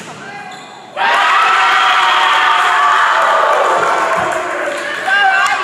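Spectators cheer and shout in a large echoing hall.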